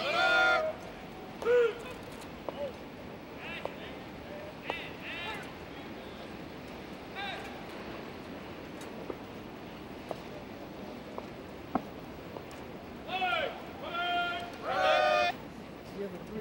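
A man shouts drill commands across an open outdoor field.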